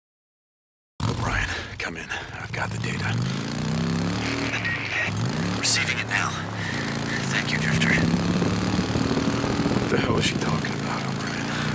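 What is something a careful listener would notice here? A motorcycle engine revs up and down as the bike rides along.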